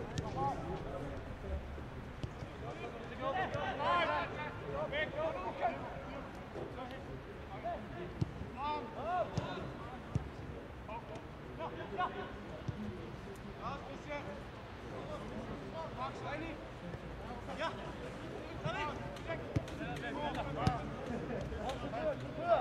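Young men shout to each other across an open echoing ground.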